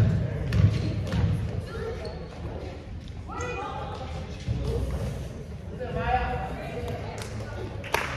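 A basketball bounces on a floor in a large echoing gym.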